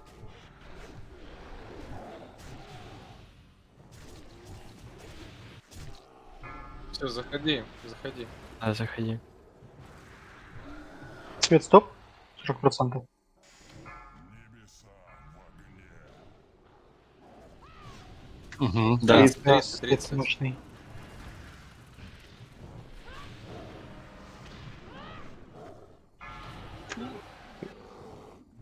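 Game spells crackle and burst with fiery effects.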